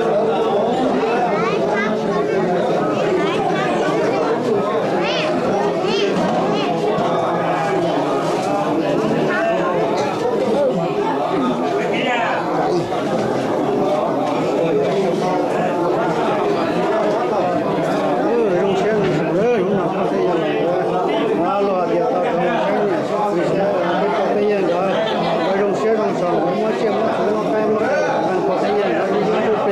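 A crowd of men and women talk over one another close by.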